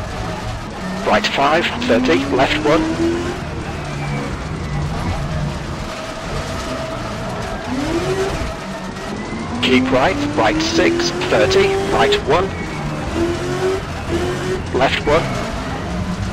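Tyres squeal sharply through corners.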